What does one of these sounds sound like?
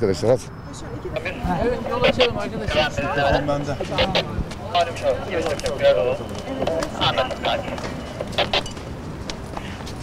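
A crowd of men and women talk over each other outdoors.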